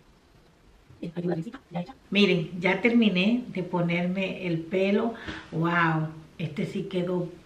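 A woman talks with animation close to a microphone.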